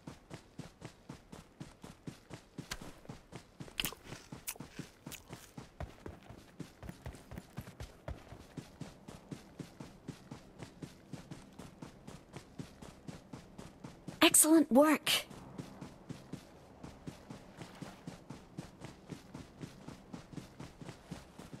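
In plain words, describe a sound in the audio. Footsteps run quickly and steadily through grass.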